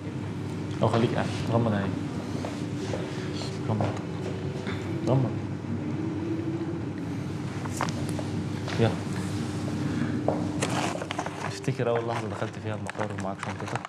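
Young men and a woman talk at a distance in a room with some echo.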